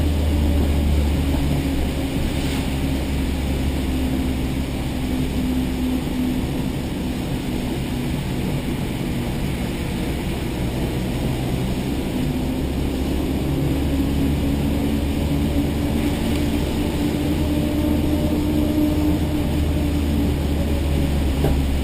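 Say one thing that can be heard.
A car engine roars loudly inside the cabin, rising and falling as it revs.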